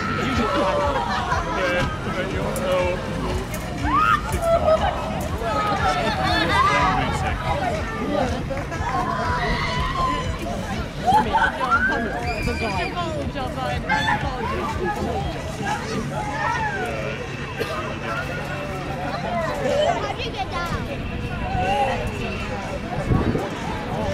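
Young riders scream and shout with excitement as they swing high overhead.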